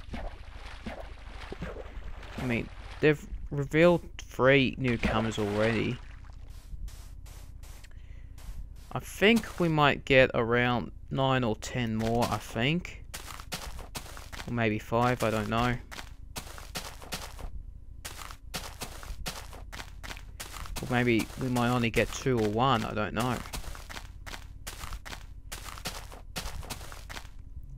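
Footsteps crunch on grass and sand.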